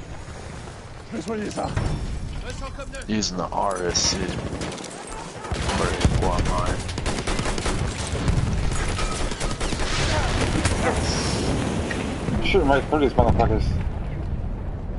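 Gunfire rattles and explosions boom nearby.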